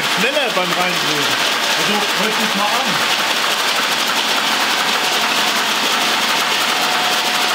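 A bench grinder whirs steadily as metal is ground against its wheel.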